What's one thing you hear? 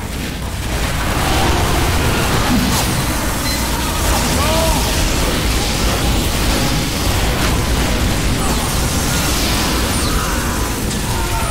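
Flamethrowers roar.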